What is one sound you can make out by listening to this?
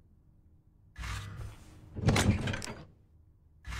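A heavy metal box lid creaks and thuds.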